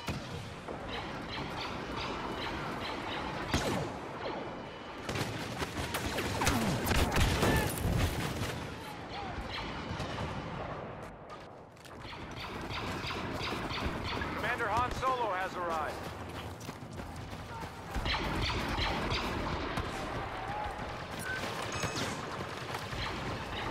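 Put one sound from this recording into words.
Blaster rifles fire in rapid, repeated bursts.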